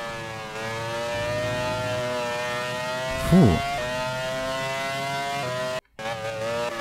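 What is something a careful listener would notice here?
A racing car engine whines loudly at high revs, shifting gears.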